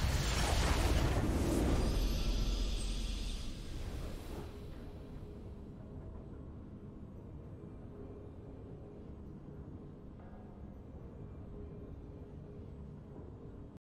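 A soft triumphant tune plays quietly.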